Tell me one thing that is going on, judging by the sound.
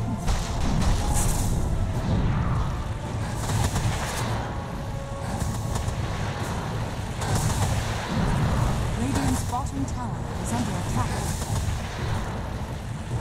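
Magic blasts and weapon hits crash during a game battle.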